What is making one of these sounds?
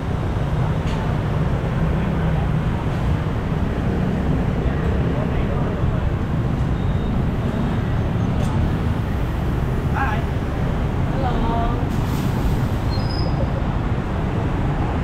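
Motorbike engines hum and rumble steadily as traffic passes close by outdoors.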